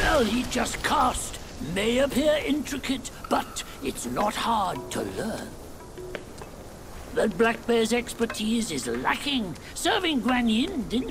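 An elderly man speaks slowly and gravely.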